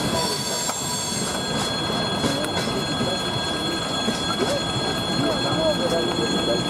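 Train wheels clatter and screech on the rails.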